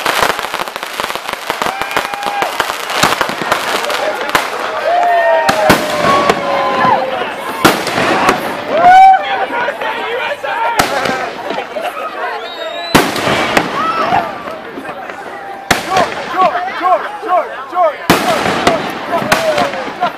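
Fireworks bang loudly, one after another.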